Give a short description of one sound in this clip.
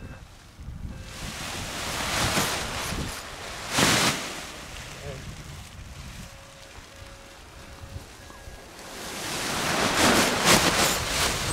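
Wind gusts across an open hillside, buffeting the microphone.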